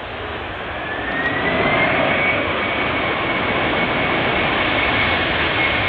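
A jet airliner's engines surge into a loud roar with a rising whine after touchdown.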